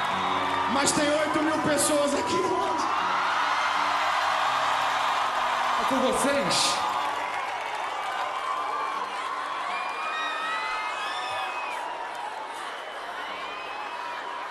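A large crowd cheers and whistles in a big hall.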